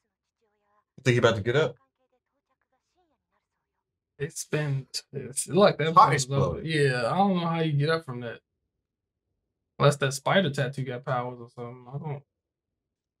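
A second young man speaks calmly close by.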